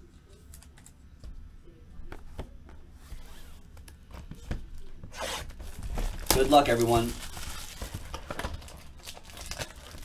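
Cardboard boxes knock and scrape as they are handled.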